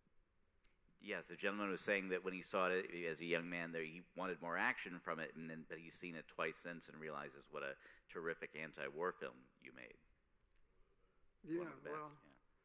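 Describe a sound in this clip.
A middle-aged man talks with animation into a microphone.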